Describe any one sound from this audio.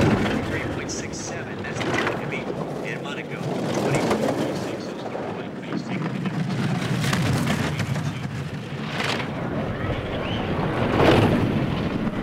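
A bobsled whooshes past close by.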